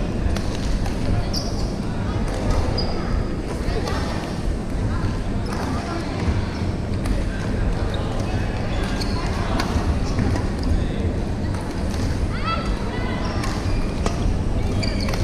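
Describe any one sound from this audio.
Players call out and chatter, echoing in a large hall.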